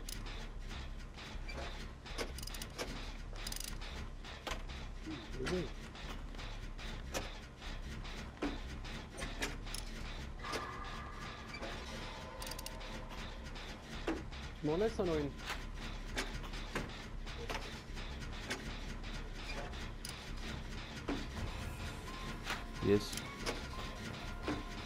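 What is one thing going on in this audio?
A generator engine rattles and clicks with quick metallic taps while being repaired.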